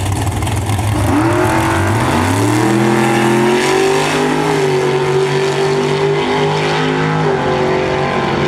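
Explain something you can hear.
Drag racing engines roar as the cars launch and scream higher through the gears.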